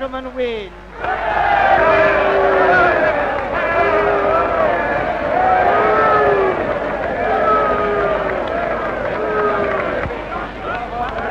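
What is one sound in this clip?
A crowd cheers and shouts together.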